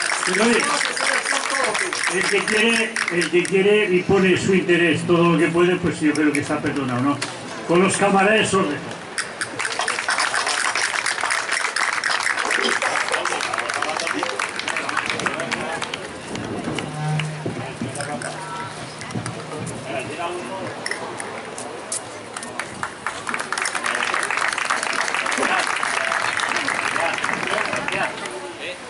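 A seated crowd murmurs and chatters.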